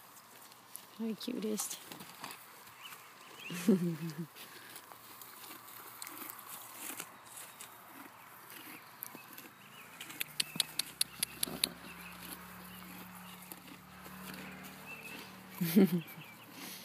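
A horse snorts and breathes close by.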